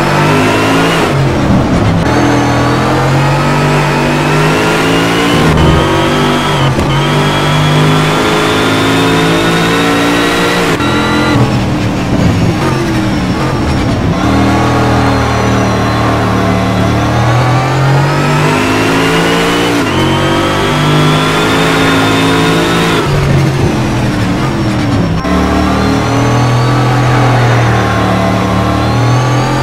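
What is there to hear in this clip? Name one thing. A racing car engine roars and revs up through the gears, dropping in pitch with each shift.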